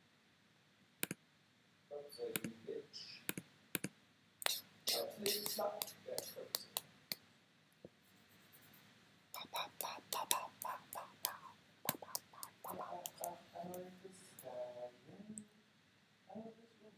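Game sound effects swoosh and chime as cards are played.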